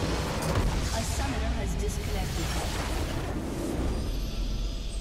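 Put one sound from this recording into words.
Loud game explosions and magic blasts crash together.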